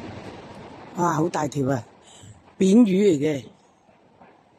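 An elderly man speaks loudly nearby.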